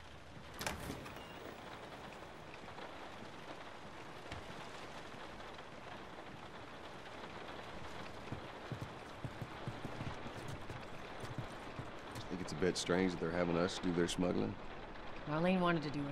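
Rain patters steadily against windows.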